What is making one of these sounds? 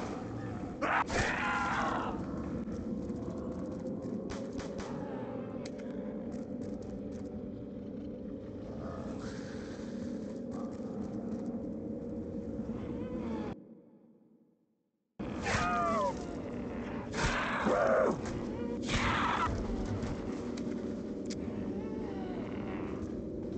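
Zombies groan and snarl nearby.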